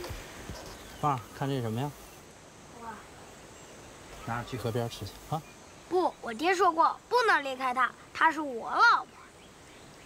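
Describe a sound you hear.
A child speaks calmly nearby.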